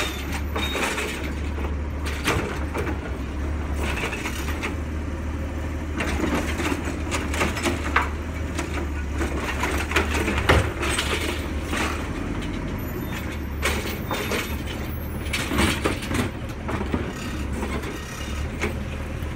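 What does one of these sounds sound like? A garbage truck's diesel engine idles with a steady low rumble close by.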